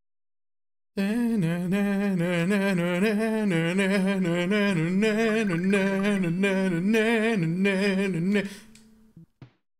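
Chiptune game music plays with a bouncy melody.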